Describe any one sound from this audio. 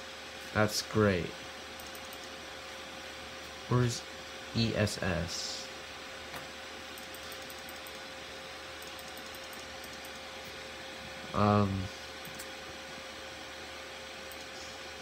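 A computer fan hums steadily.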